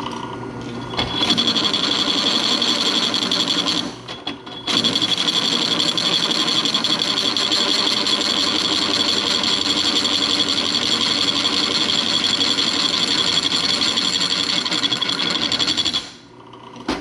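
A drill bit grinds and screeches into metal.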